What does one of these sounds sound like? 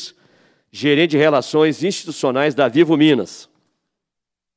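A man speaks into a microphone in a large room.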